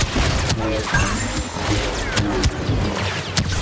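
A laser sword hums and clashes against bolts.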